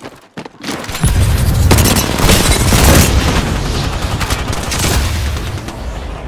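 An automatic rifle fires.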